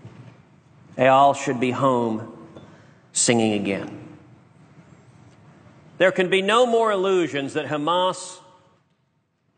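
A man speaks formally into a microphone in a large echoing hall.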